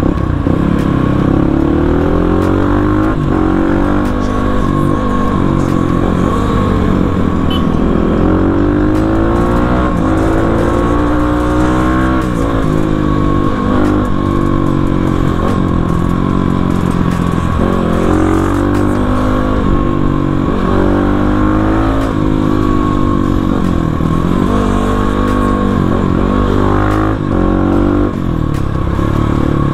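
A motorcycle engine revs up and down close by, rising and falling in pitch again and again.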